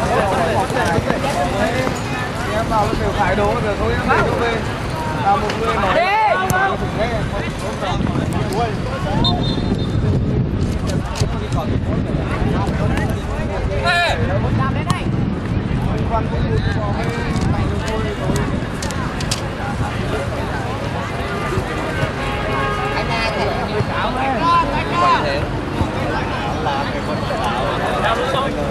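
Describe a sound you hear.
Young men shout to each other across an open pitch.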